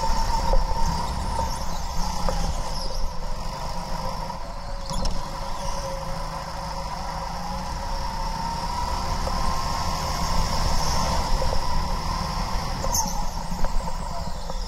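Wind rushes past as a kart speeds along.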